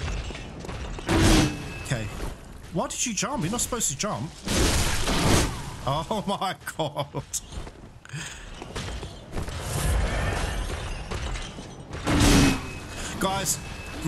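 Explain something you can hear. Heavy blade blows strike and slash with loud thuds.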